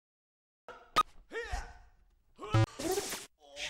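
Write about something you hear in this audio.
Game punches and hits sound in quick bursts.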